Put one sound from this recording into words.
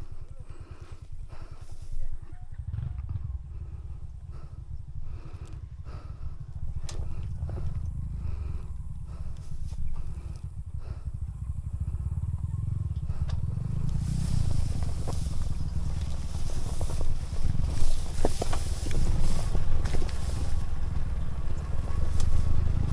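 A motorcycle engine rumbles steadily and revs.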